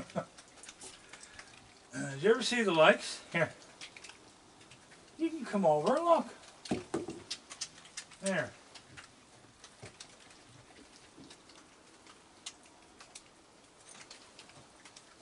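A raccoon crunches and chews food.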